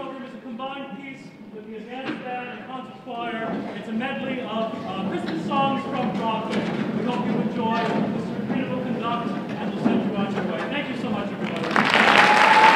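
A large choir sings with an orchestra in a large echoing hall.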